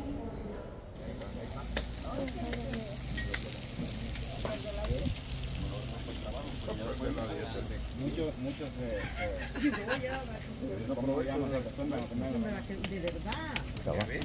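Several men talk and chat outdoors.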